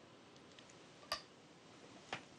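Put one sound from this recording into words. A stone clicks sharply onto a wooden game board.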